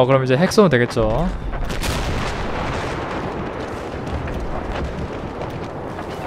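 A huge explosion rumbles and roars.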